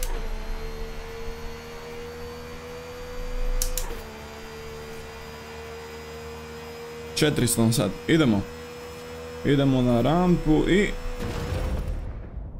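A sports car engine roars at full speed.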